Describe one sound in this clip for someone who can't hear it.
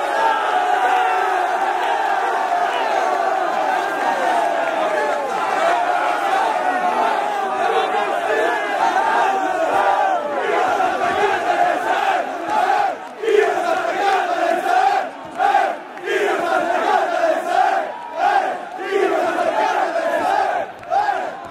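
A large crowd of young men cheers and chants loudly outdoors, close by.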